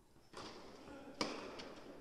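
A tennis ball is struck with a racket, echoing in a large indoor hall.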